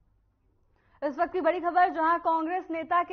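A young woman speaks clearly and steadily into a microphone.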